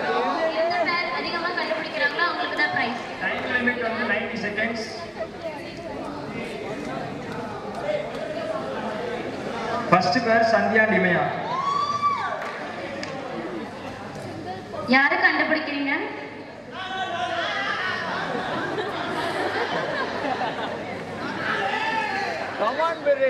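Young women chatter and laugh nearby.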